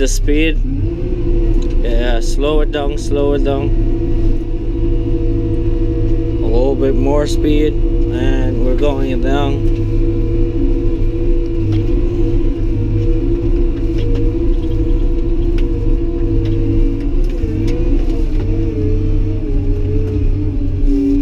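A heavy diesel engine rumbles steadily close by.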